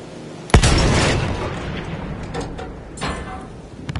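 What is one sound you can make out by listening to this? Shells explode with rumbling blasts.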